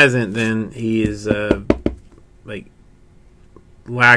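Hands handle a hard plastic card case with light clicks.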